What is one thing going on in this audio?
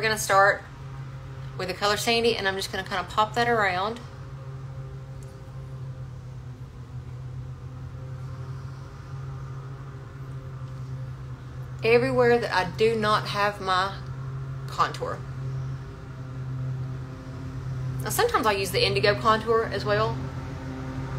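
A woman talks calmly and close by, in short bursts.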